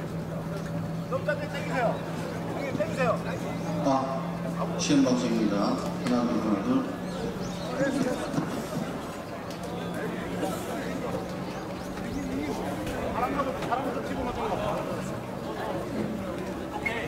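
Men talk to each other outdoors, at a distance.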